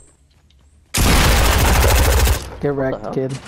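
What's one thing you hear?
Gunfire rattles in a rapid burst.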